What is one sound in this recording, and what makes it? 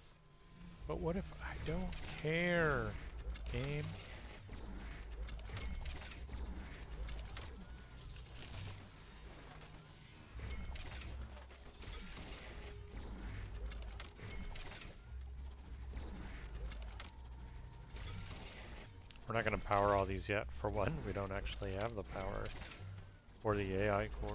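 Energy weapons zap and fire in short bursts.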